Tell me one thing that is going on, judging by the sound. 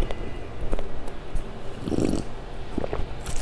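A young woman sips a drink close to a microphone.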